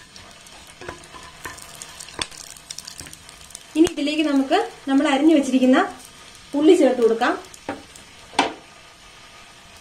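Oil sizzles gently in a pan.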